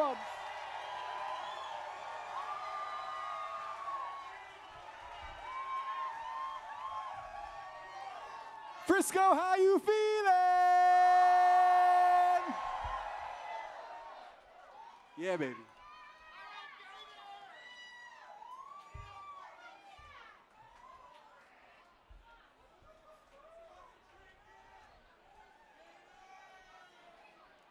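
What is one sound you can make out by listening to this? A crowd cheers and whistles loudly in a large echoing hall.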